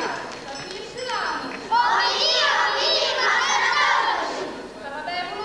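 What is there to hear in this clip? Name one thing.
A choir of women sings together in a large echoing hall.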